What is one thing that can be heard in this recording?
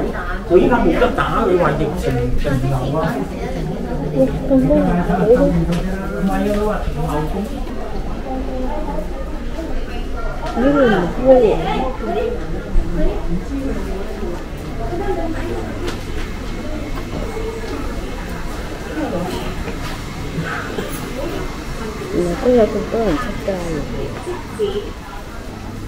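Men and women chatter nearby.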